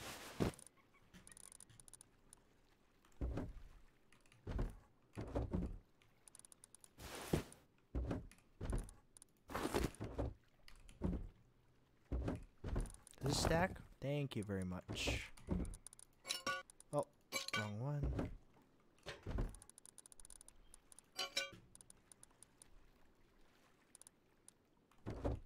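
Game items click and clatter as they are moved.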